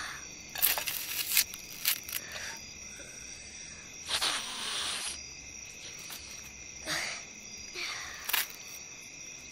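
A boy sobs and sniffles close by.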